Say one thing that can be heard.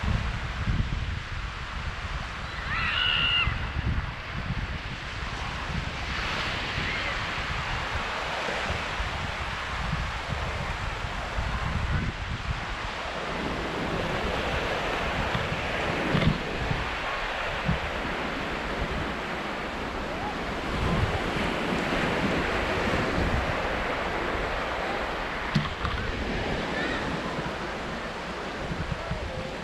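Small waves lap softly on the shore.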